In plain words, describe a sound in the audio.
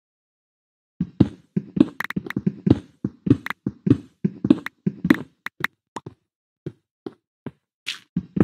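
Footsteps thud on stone in a quick, uneven run.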